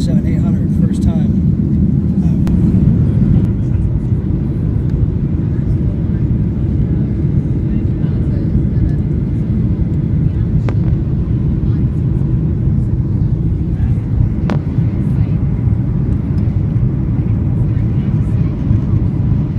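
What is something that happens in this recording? A jet engine roars steadily with a low rumble.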